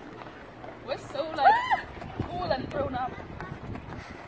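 Young women squeal and shout excitedly outdoors.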